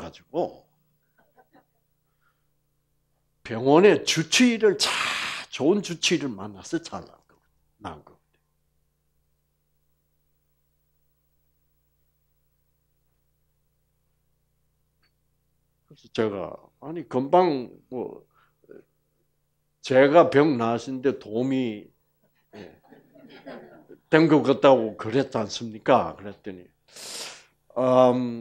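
An elderly man speaks calmly through a headset microphone, pausing between phrases.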